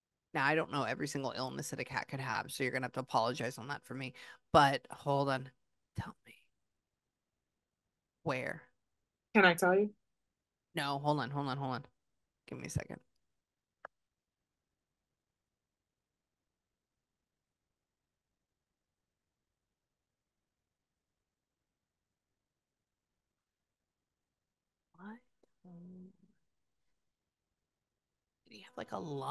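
A young woman speaks softly and close into a microphone, in bursts with long pauses.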